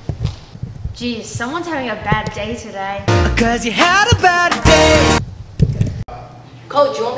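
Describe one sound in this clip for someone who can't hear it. A teenage girl speaks calmly and close by.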